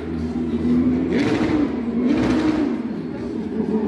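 A race car roars past at speed.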